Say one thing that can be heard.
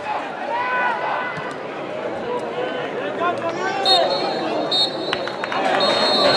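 Spectators shout and chatter outdoors.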